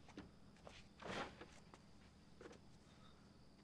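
A metal folding chair creaks as a man sits down.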